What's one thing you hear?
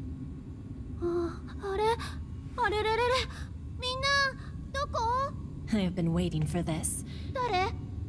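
A young woman speaks in a confused, startled voice.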